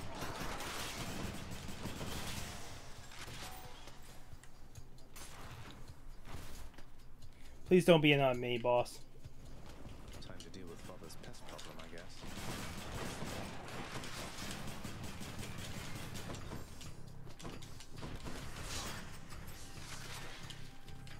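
Video game combat effects whoosh and crash.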